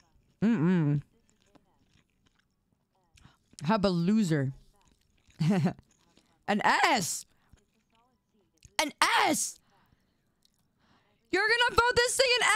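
A young woman talks animatedly into a microphone in short bursts.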